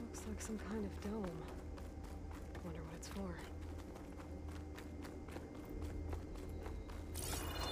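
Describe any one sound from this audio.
Footsteps tap along a metal walkway.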